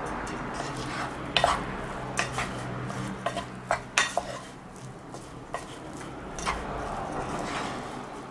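A wooden paddle scrapes and knocks against a metal pot.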